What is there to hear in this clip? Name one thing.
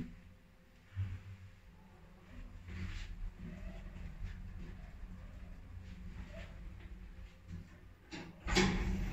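An elevator hums low and steadily as it rides.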